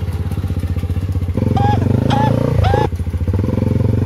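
A three-wheeler engine rumbles close by.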